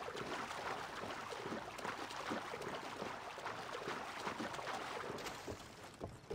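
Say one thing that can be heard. Water splashes as someone swims through it.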